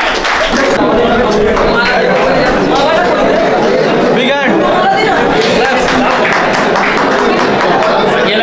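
A crowd of men chatter loudly nearby.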